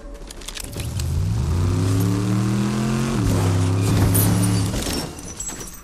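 A car engine revs up and roars as it drives off.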